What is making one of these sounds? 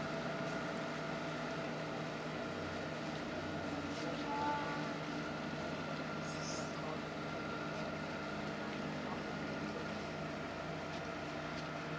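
Water churns and laps against a ship's hull.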